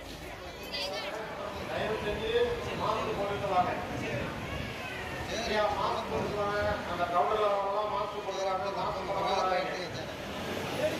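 A middle-aged man speaks calmly through a microphone over a loudspeaker.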